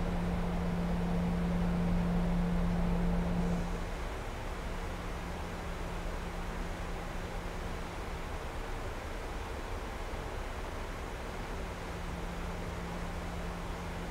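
Air rushes past an aircraft in a steady low roar.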